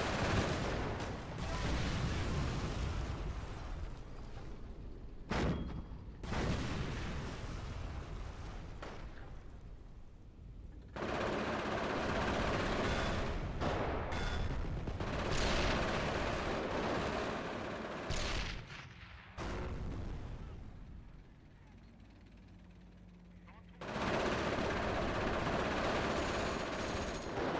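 Explosions boom and rumble across a battlefield.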